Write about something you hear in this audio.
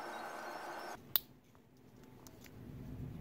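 Small plastic parts click and rattle as hands handle them.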